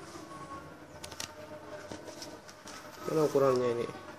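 Plastic wrapping crinkles and rustles.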